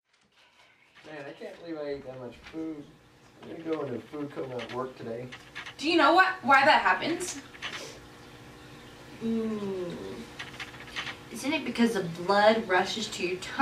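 Young women talk together close by.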